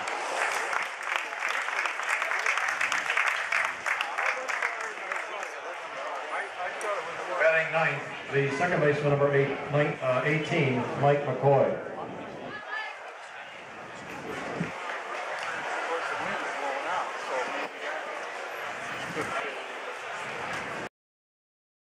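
A crowd cheers and claps in an open ballpark.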